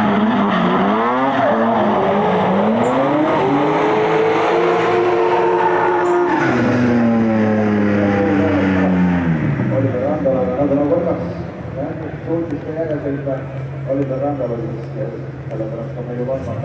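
Tyres screech as cars slide sideways.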